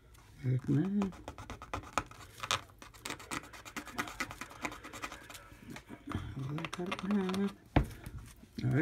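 A coin scratches at a scratch card in quick, rasping strokes.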